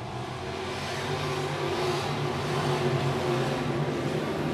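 A race car engine swells louder as the car passes close by.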